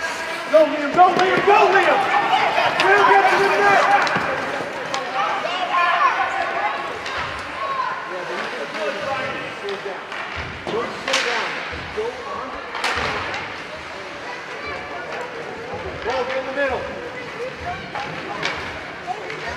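Hockey sticks clack against the puck and ice.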